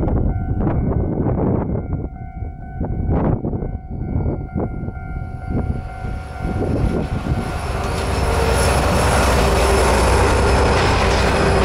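A diesel locomotive rumbles as it approaches and passes close by.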